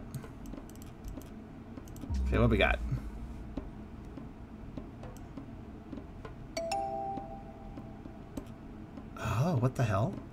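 A puzzle game makes soft clicking sounds.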